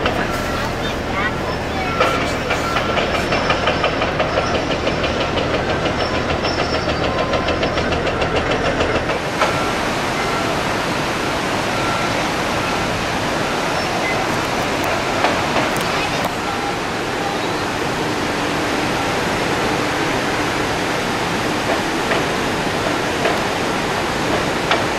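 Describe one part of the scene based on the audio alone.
Water rushes and roars over a weir.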